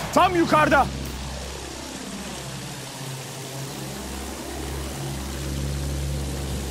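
A biplane flies past, its engine sweeping up and then down in pitch.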